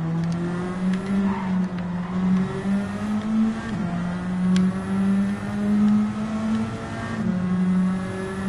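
A racing car engine drones steadily at high revs, shifting pitch with gear changes.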